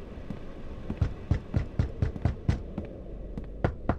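Footsteps thud across a wooden floor indoors.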